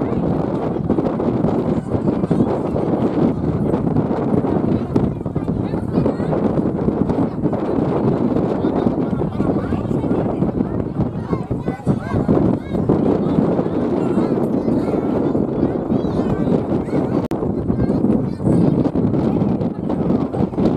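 A crowd of men, women and children chatters all around outdoors.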